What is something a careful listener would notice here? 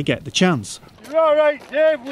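A man speaks loudly outdoors.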